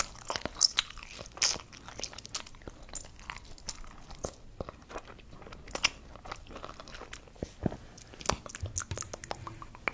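A woman makes soft wet mouth sounds and lip smacks very close to a microphone.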